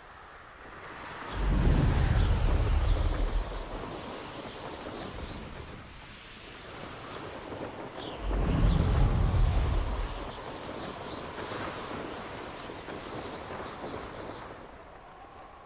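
Wind rushes loudly past, surging in strong gusts.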